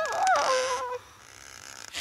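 A small cartoon creature squeals in a high, wavering voice.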